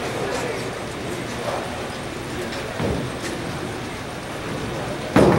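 A bowling ball rolls and rumbles down a lane in a large echoing hall.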